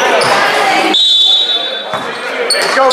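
A referee's whistle blows shortly.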